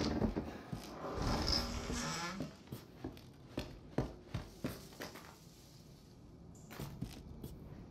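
Footsteps creak on old wooden floorboards.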